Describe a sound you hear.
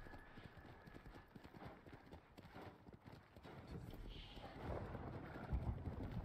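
A horse gallops, its hooves thudding on sand.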